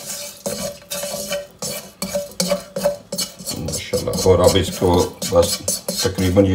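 A spatula scrapes and stirs in a metal pan.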